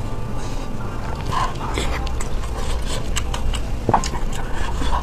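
Chopsticks click against a plate.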